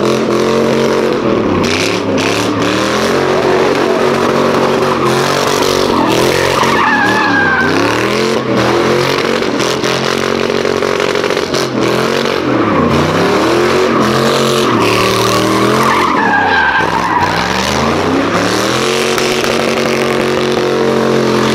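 A loud truck engine roars and revs up and down.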